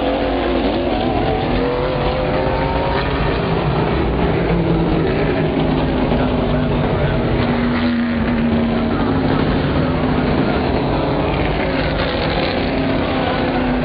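Race car engines roar loudly, rising and falling in pitch as the cars speed past.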